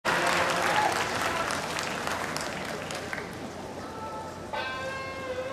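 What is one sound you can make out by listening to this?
A large crowd claps and cheers outdoors.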